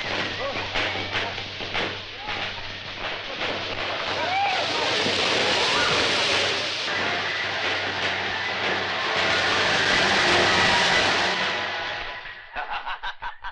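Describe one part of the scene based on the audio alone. Fireworks crackle and pop loudly, with a hissing roar.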